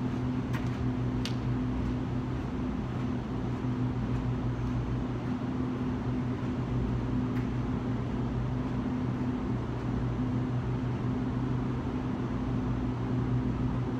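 An electric lamp hums steadily.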